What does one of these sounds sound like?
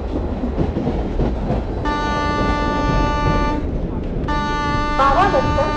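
A train rumbles and clatters slowly along the rails.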